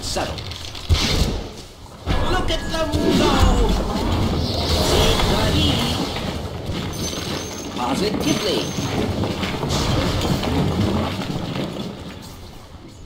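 Video game battle effects crash and crackle during a fight.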